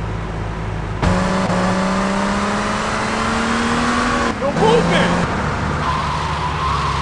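A car engine starts and hums steadily, slowly rising in pitch as the car drives off.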